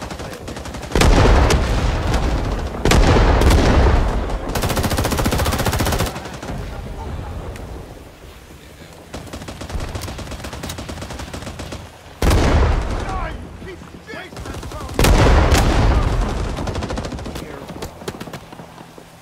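Loud explosions boom nearby and rumble away.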